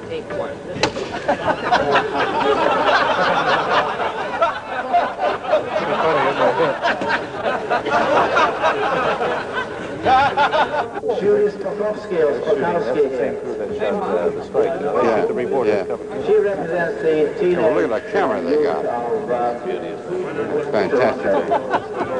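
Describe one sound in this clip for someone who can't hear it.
A large crowd screams and shrieks loudly.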